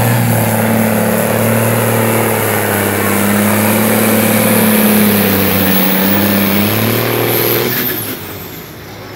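A diesel pulling tractor roars at full throttle while hauling a weight sled, then passes by.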